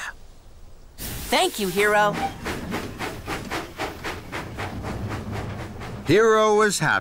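A steam engine puffs steadily.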